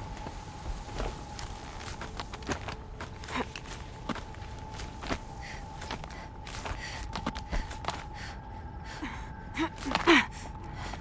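Footsteps thud and scrape on rock and wood.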